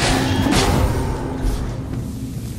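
A sword whooshes and strikes with a burst of magic.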